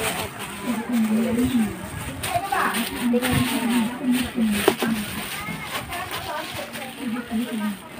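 A plastic bag rustles and crinkles in a young girl's hands.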